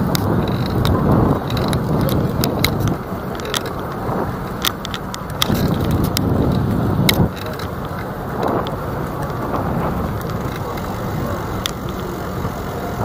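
Wind rumbles and buffets in gusts past a moving bicycle.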